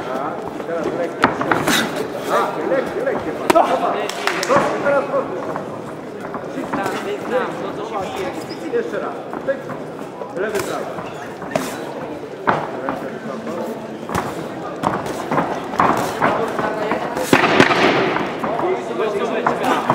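Boxing shoes scuff and squeak on the ring canvas.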